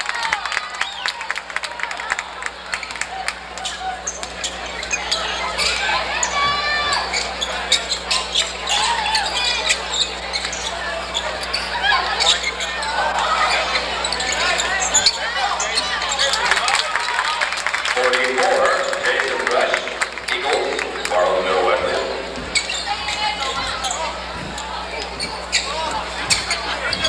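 Sneakers squeak sharply on the wooden court.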